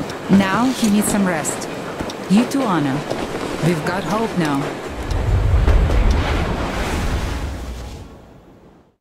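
A young woman speaks softly and warmly, close by.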